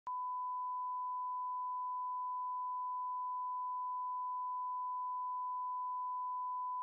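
A steady, high test tone sounds without a break.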